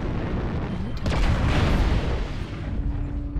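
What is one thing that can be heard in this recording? Energy weapons fire in a loud, crackling burst.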